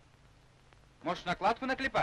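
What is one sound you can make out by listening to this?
A man speaks quietly at close range.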